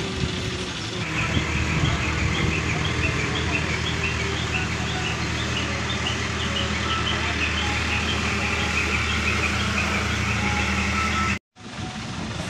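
A diesel engine idles with a steady low rumble.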